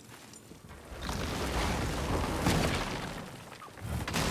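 A large door rumbles open with a loud rushing whoosh.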